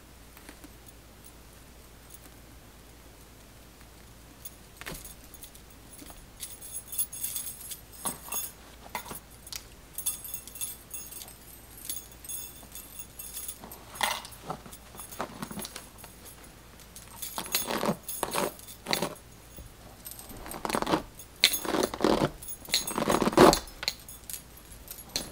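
Hair rustles softly as fingers twist and pull it.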